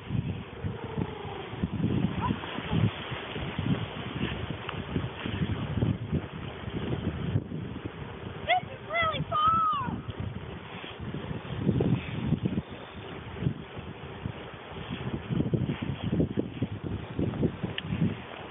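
Wind buffets the microphone in gusty rumbles.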